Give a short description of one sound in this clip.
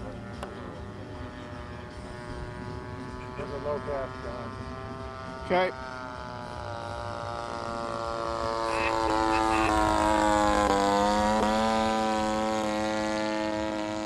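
A small model plane's engine buzzes overhead, growing louder as it comes closer.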